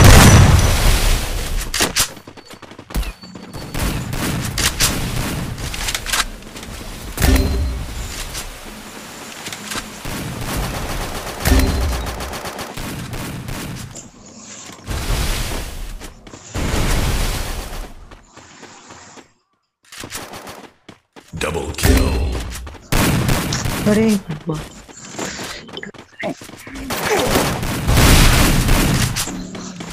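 Footsteps run over grass and wooden floors.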